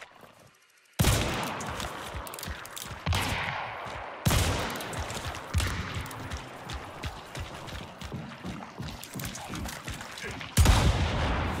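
A revolver fires loud shots that echo far off.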